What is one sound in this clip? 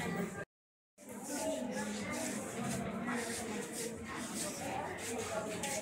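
A crowd of men and women chatter nearby in a room.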